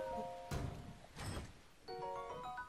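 A short chime rings.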